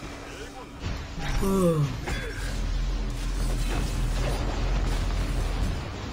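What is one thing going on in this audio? Video game blasts and spell effects crash and whoosh during a fight.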